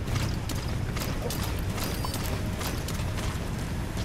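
Gear rustles as someone crawls along the ground.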